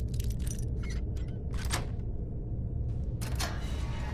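A metal gate door creaks open.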